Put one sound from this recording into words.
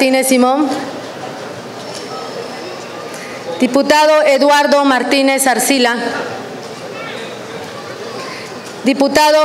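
A man speaks formally over a loudspeaker in a large open space, with pauses between phrases.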